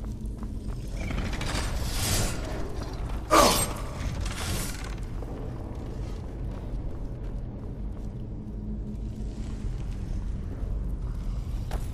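Footsteps tread on stone in a tunnel.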